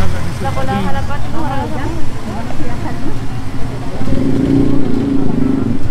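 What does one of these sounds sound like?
A motorbike engine hums as it rides slowly past.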